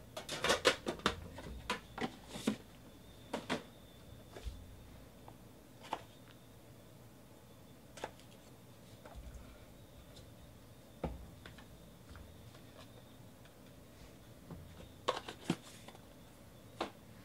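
Cardboard boxes knock and slide against a table.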